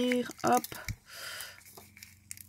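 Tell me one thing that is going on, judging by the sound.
Foil wrapping crinkles as it is peeled.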